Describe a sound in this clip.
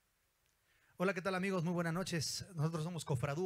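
A small band plays guitars and percussion along.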